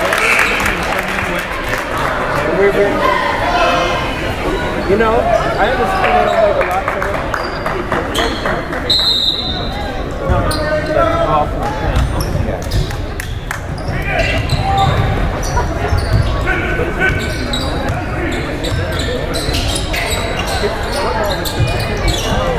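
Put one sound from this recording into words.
A crowd of spectators talks and cheers, echoing in a large hall.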